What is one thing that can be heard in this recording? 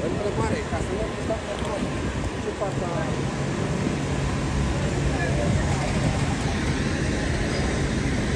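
A fire engine idles with a steady low rumble.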